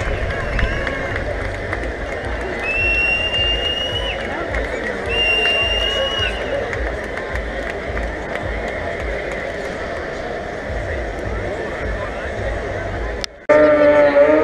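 A crowd of spectators murmurs outdoors.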